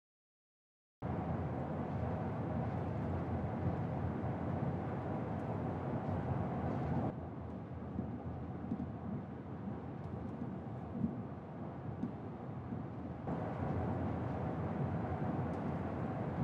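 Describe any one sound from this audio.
Road noise rumbles steadily inside a moving car on a highway.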